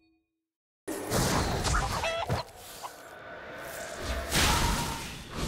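Video game sound effects whoosh and clatter.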